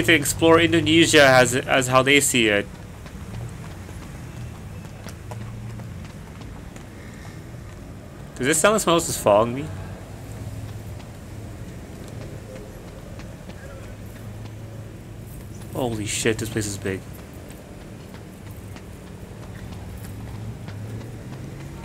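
Footsteps walk steadily on hard pavement.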